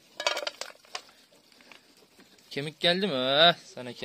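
Food scraps tip into a metal bowl with a soft clatter.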